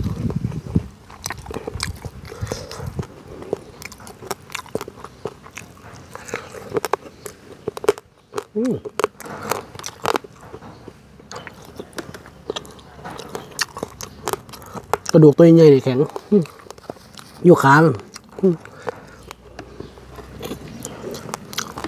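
A man chews and smacks his lips close by.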